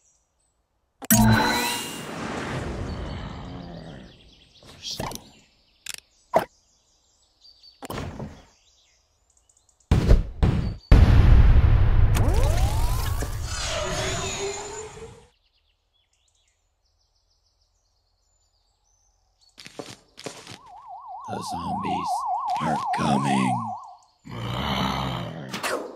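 Cartoonish game sound effects chime, whoosh and pop in short bursts.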